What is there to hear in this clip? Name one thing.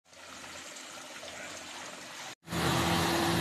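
Water trickles and splashes into a fountain basin.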